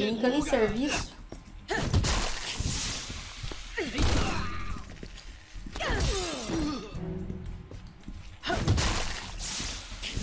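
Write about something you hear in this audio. Heavy blows and thuds land during a fight in a game.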